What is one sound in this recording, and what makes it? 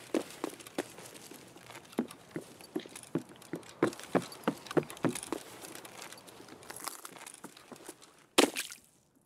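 Footsteps tread on hard floors.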